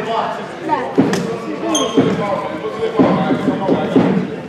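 A basketball bounces on a wooden floor with dull thuds.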